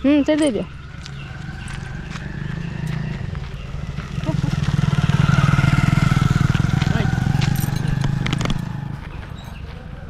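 A motorbike engine drones as it passes nearby and fades.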